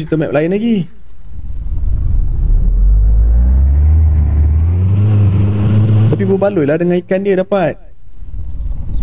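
A motorboat engine revs up, roars and then dies away.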